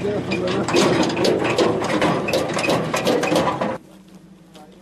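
Car engines run nearby.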